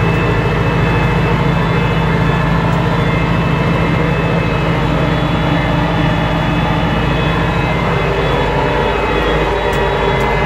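A tractor engine chugs steadily up close.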